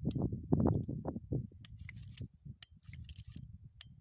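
A gun's metal parts click as they are handled.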